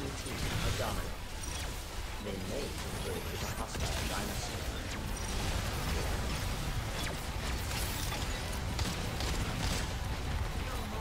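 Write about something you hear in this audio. Gunfire and explosions rattle in a fast-paced game.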